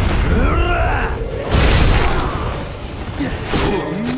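Explosions boom in quick bursts.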